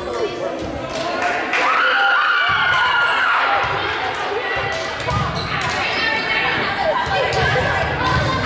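A volleyball thumps off a player's arms.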